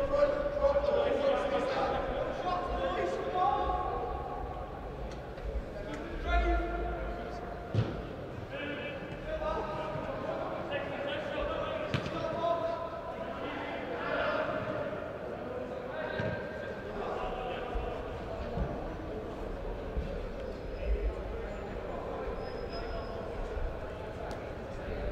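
Young players shout and call to each other across a large echoing indoor hall.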